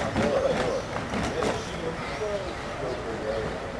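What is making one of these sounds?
A plastic wheelie bin rattles as it rolls over pavement.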